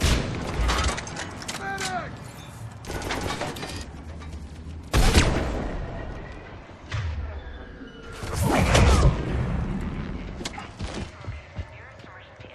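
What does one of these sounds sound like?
Gunfire cracks in sharp, loud bursts.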